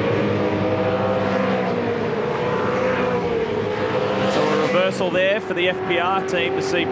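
Racing car engines roar loudly at high revs.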